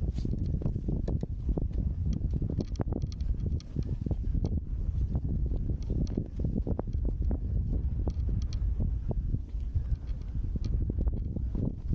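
Boots crunch and squeak on packed snow.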